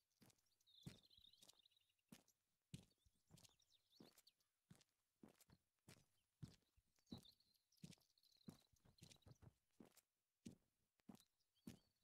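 Footsteps thud steadily on hard stone ground.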